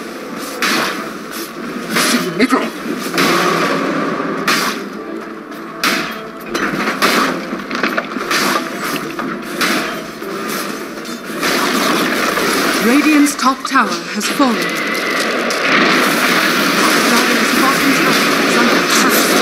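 Spell blasts and weapon clashes from a game crackle and boom in quick bursts.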